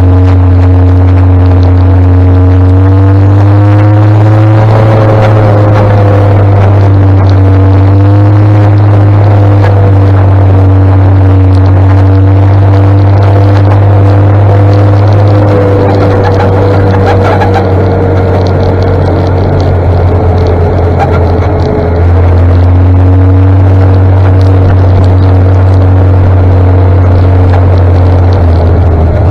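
A tractor engine rumbles just ahead.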